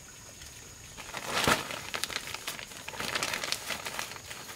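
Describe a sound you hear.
Leaves and branches rustle as fruit is picked from a tree.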